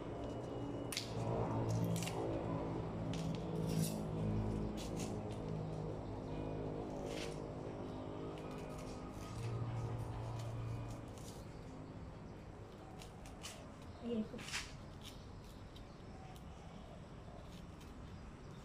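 A knife cuts and snaps through banana stalks with sharp clicks.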